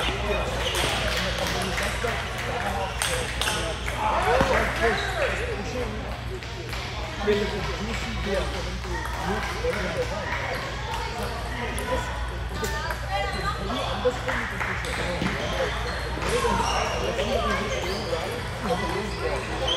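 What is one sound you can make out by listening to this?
Table tennis balls click against paddles and bounce on tables.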